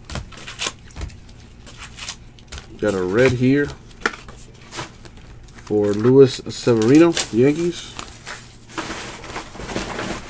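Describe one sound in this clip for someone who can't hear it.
Trading cards rustle and slide against each other in hands close by.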